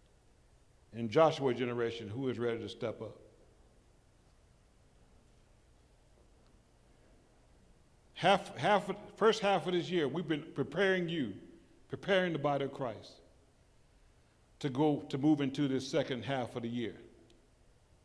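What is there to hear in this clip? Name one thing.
An elderly man speaks with emphasis into a microphone, heard through loudspeakers in a large hall.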